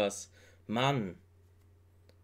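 A young man speaks a few brief words close to a microphone.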